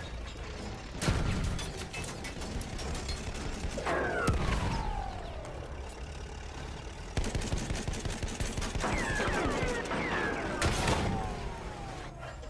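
A tank cannon fires with a heavy bang.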